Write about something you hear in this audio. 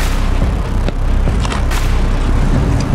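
A bat taps on home plate.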